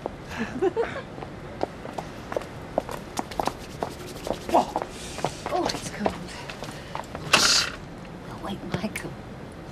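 Footsteps click on pavement.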